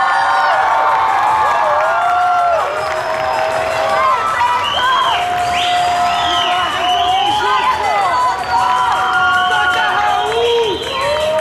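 Music plays loudly through loudspeakers.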